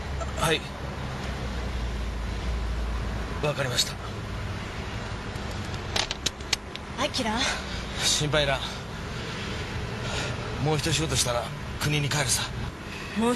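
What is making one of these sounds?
A young man talks on a phone in short bursts.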